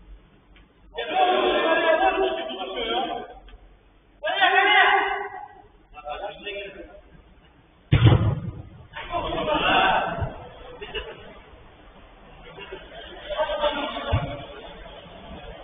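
Young men shout to each other across a large echoing indoor pitch.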